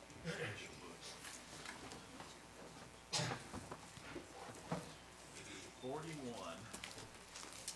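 A man speaks quietly at a little distance.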